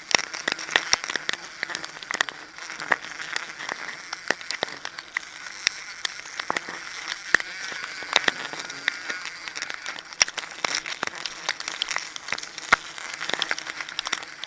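Climbing spikes knock and scrape against tree bark.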